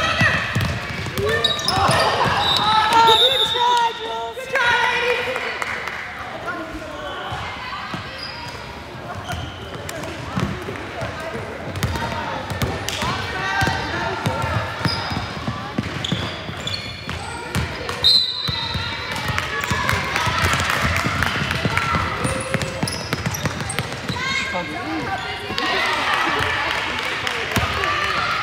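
Young women call out and shout to each other in an echoing gym.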